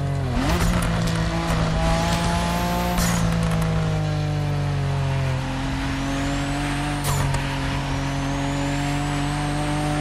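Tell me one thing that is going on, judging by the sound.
A sports car engine hums steadily, shifting pitch as it accelerates and shifts gears.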